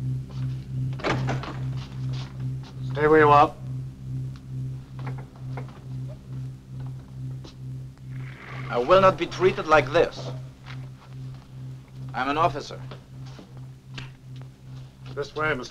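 A man speaks firmly in short bursts, close by.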